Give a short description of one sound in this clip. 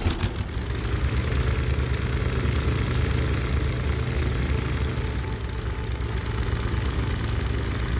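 A small motor boat putters steadily through water.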